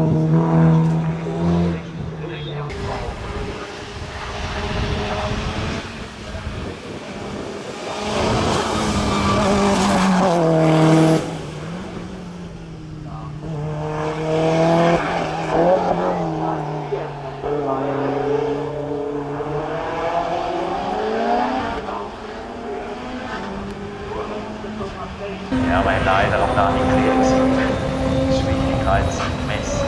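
Race car engines roar loudly, revving high and shifting gears as they pass by.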